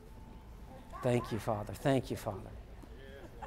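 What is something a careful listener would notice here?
A man speaks briefly into a microphone over loudspeakers in a large hall.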